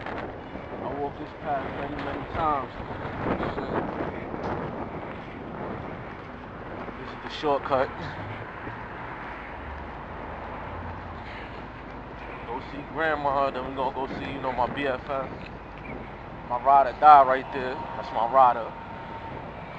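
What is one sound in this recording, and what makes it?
A man speaks close by in short bursts outdoors.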